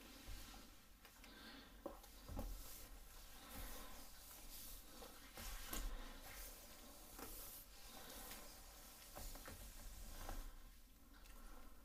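A woman speaks softly and close by, almost in a whisper.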